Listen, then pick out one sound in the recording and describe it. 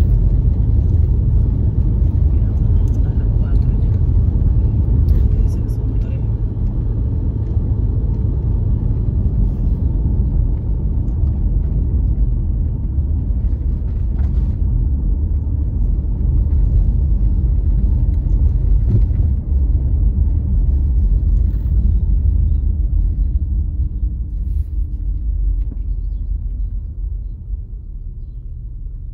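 A car's engine hums steadily as it drives along a road, slowing toward the end.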